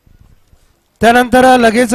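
A man chants loudly and rapidly.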